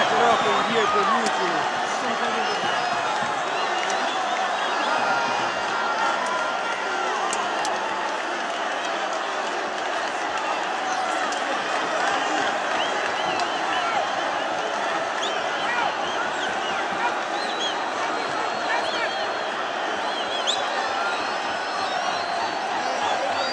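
Men nearby talk and shout over the crowd.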